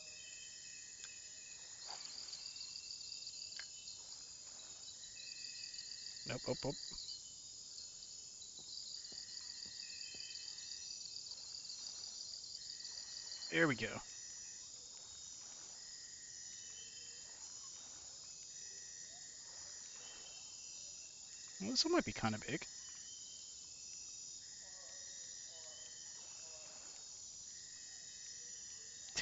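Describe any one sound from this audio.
A man talks quietly and briefly close to a microphone.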